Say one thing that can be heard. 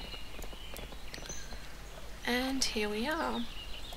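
Horse hooves clop on stone.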